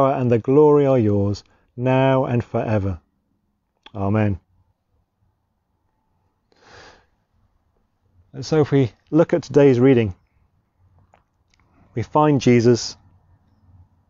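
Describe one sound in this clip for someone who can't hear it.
A man speaks calmly and warmly into a close microphone, pausing between phrases.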